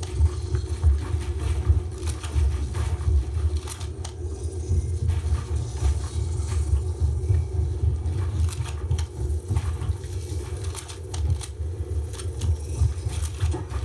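Building pieces clack into place in quick bursts from a video game played through speakers.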